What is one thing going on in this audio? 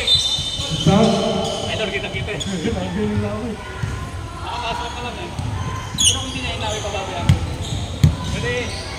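Young people talk and call out in a large echoing gym.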